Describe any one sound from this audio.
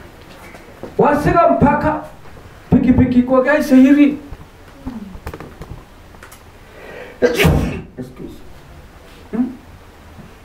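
A middle-aged man preaches loudly through a microphone and loudspeakers, in bursts with pauses.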